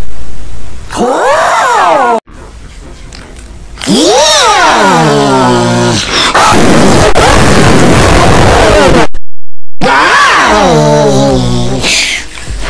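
A man speaks in a squawky, sliding cartoon voice, close to the microphone.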